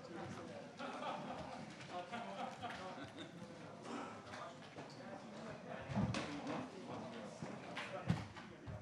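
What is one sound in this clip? Several men talk among themselves in a room.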